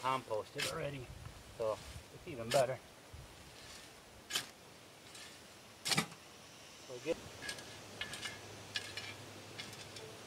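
A shovel scrapes and thuds into loose soil.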